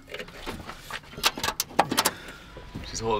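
Metal parts click and clatter.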